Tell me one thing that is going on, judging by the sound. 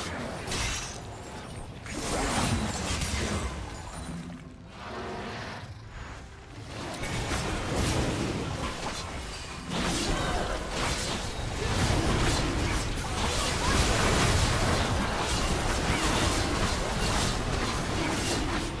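Fantasy game spells crackle, whoosh and burst in a battle.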